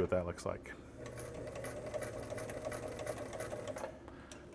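A sewing machine runs with a steady, rapid stitching hum.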